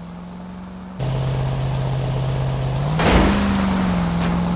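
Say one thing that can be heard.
Water splashes against a moving boat's hull.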